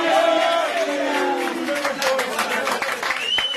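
Hands clap in a burst of applause.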